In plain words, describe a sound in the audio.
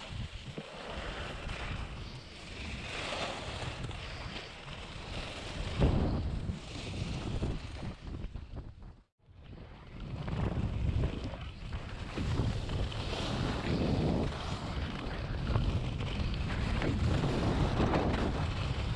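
Skis scrape and hiss over hard snow.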